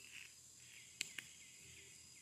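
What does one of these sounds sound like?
A small plastic button clicks.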